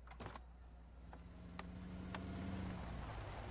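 A car engine approaches and grows louder.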